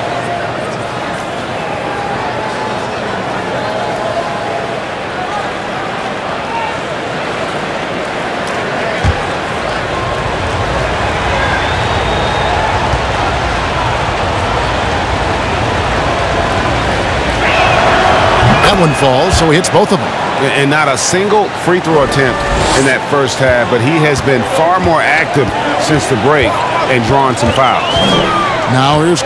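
A large crowd murmurs steadily in an echoing arena.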